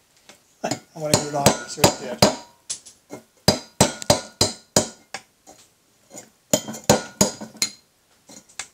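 A hammer strikes metal in sharp, ringing blows.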